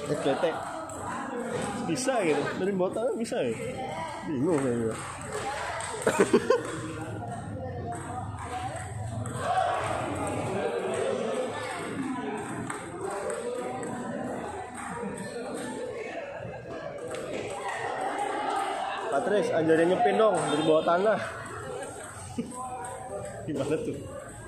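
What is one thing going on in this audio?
Table tennis balls click on tables and paddles in a large echoing hall.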